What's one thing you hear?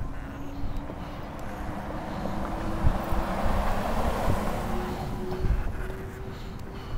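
A pickup truck drives past, its engine and tyres rising and fading.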